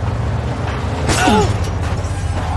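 Car tyres screech sharply during a turn.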